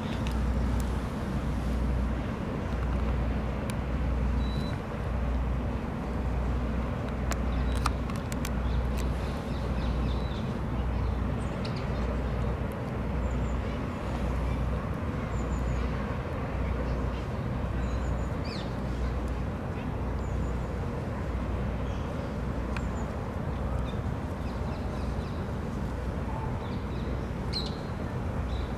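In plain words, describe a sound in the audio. A barge's diesel engine throbs steadily with a slow, even pulse.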